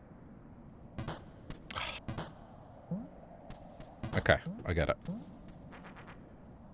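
Short electronic game sound effects chirp and whoosh in quick bursts.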